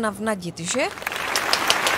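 A woman speaks into a microphone with animation.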